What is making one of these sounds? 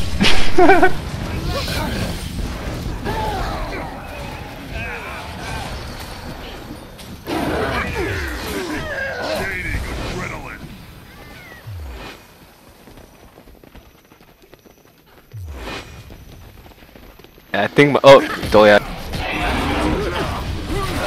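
Spell effects whoosh and crackle during a fight.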